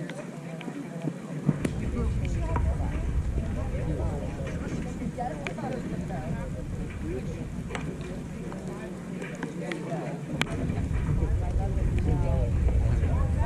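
Young men call out and chatter across an open field.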